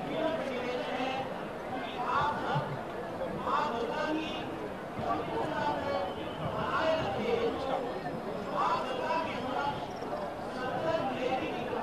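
A large crowd of men and women chants and murmurs close by outdoors.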